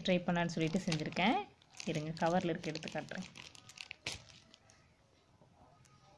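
A plastic packet crinkles softly as it is handled.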